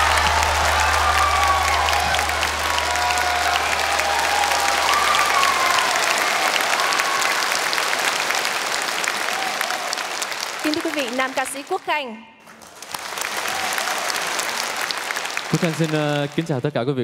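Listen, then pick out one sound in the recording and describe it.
A large audience claps and cheers loudly.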